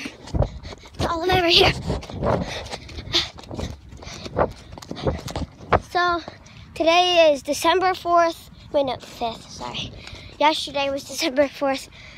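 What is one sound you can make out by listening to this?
A young girl talks close to a phone microphone with animation.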